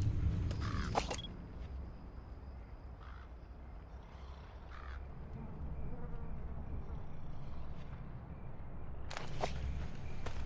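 A rifle scope clicks as it zooms.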